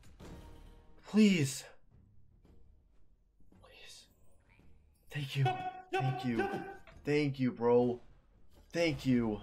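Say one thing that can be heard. A young man exclaims excitedly, close to a microphone.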